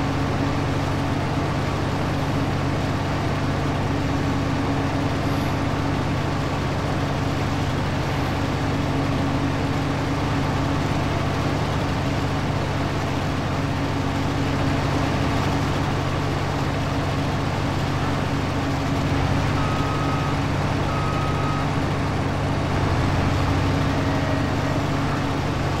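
A large harvester engine drones steadily and loudly.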